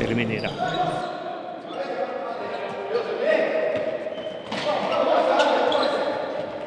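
Shoes squeak on a hard floor in an echoing hall.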